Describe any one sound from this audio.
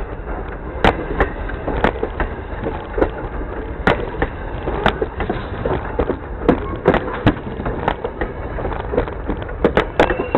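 Steel wheels clank and click loudly over rail joints.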